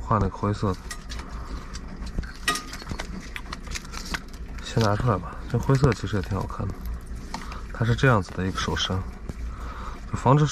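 A small metal clip clicks and rattles as it is handled.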